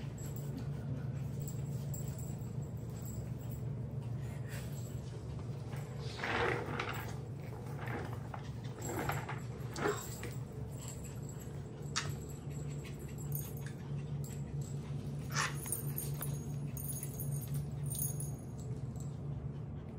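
Puppy paws patter and scuffle on a hard floor.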